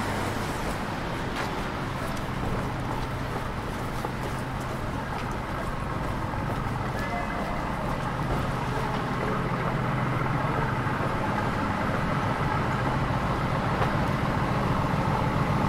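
Footsteps of passers-by tap on pavement nearby.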